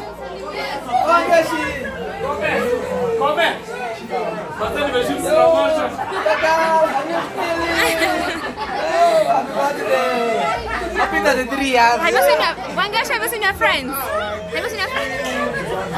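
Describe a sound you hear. Young women laugh loudly.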